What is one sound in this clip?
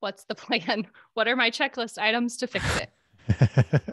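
A woman talks cheerfully into a close microphone over an online call.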